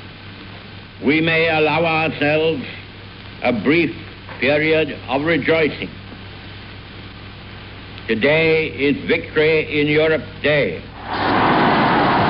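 An elderly man speaks firmly into a microphone.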